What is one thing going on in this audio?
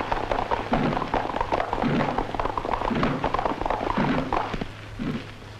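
Horses gallop in a group, hooves drumming on dry ground.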